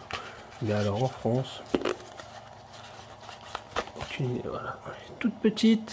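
A cardboard sleeve rustles and scrapes as a glass bulb slides out of it.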